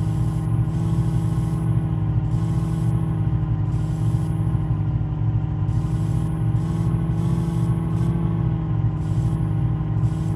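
A truck engine hums steadily at low speed.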